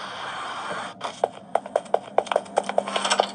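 Quick footsteps patter on a hard floor from a small speaker.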